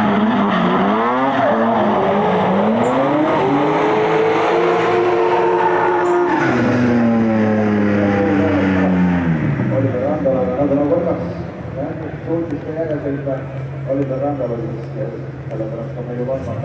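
Car engines rev hard and whine up and down in pitch.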